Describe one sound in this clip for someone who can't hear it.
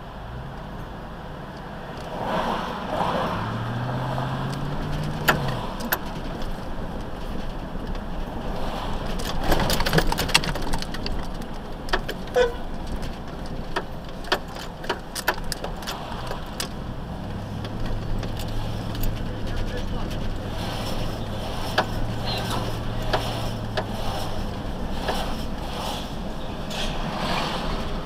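A car engine hums steadily while driving through city traffic.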